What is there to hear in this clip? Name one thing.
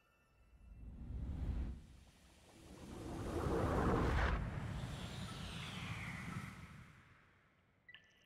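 A rushing whoosh of wind swells and fades as something flies fast through the air.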